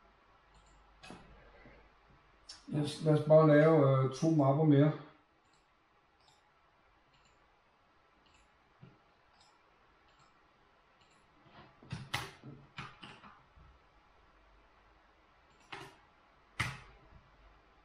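Computer keys click as a man types.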